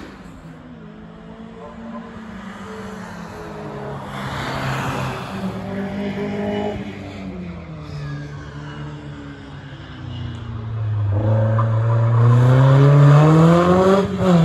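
A distant racing car engine whines and echoes around the hill.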